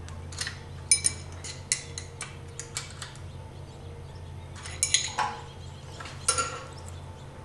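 A metal wrench clicks and taps against a nut.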